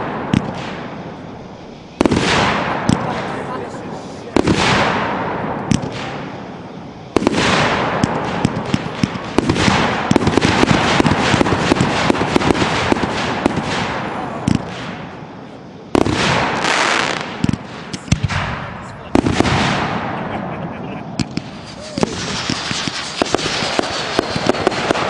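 Fireworks crackle and sizzle as sparks fall.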